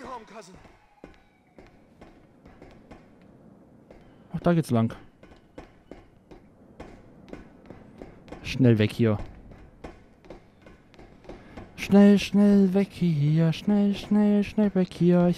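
Footsteps clank on a metal walkway and stairs.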